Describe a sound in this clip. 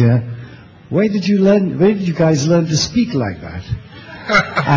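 A middle-aged man speaks into a microphone with animation.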